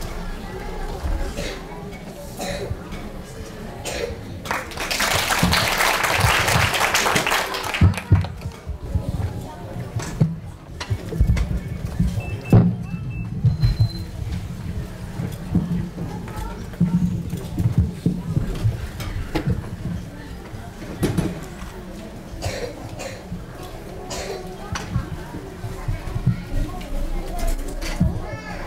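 An audience murmurs and chatters quietly in a large hall.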